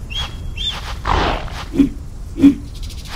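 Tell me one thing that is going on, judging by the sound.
A big cat snarls and growls during an attack.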